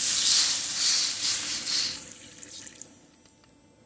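Water hisses and sizzles loudly as it hits a hot pan, then dies away.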